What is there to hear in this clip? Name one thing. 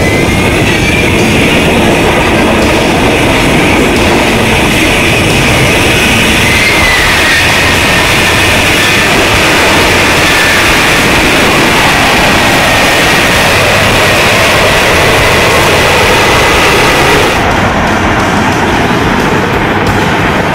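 A jet engine roars steadily with a high whine.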